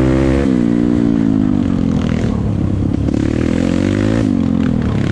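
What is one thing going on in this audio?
A motorbike engine roars nearby, its pitch rising and falling as it changes gear.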